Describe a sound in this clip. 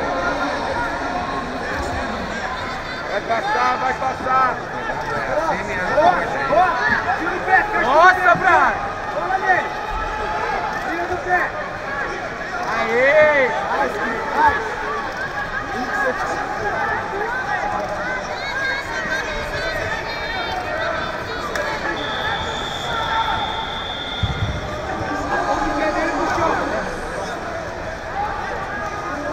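A crowd in a large echoing hall murmurs and shouts throughout.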